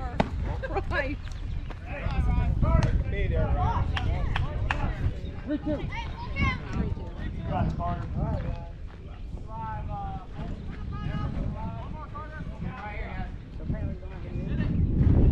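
Men and women call out and chatter across an open field.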